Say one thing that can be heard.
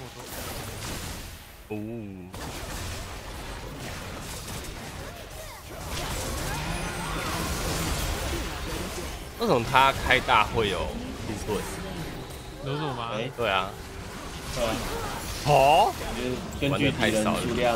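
Game sound effects of spells and hits play throughout.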